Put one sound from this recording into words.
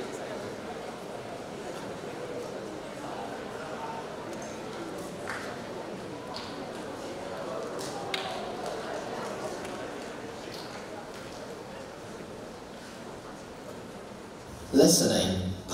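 An audience murmurs quietly in a large hall.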